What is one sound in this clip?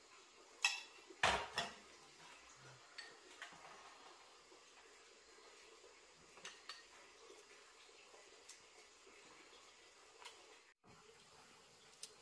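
Chopsticks clink against a bowl and plate.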